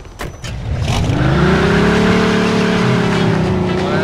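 A car engine starts and revs loudly.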